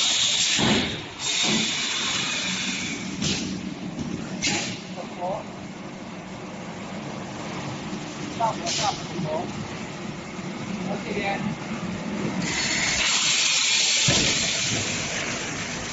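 A forming machine hums and clatters steadily nearby.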